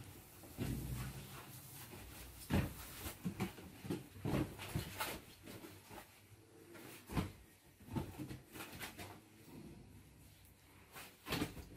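A curtain rustles as a monkey climbs it.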